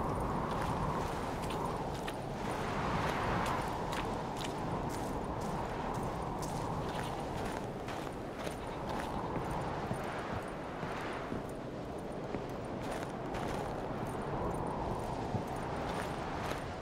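Footsteps crunch on snow, then thud on wooden planks.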